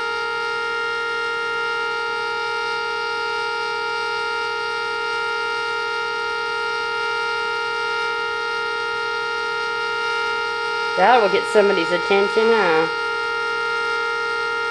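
A whistling tea kettle sounds a steady, horn-like chord of several tones.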